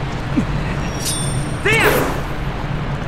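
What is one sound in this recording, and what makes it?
A sword swishes through the air with a short ringing sweep.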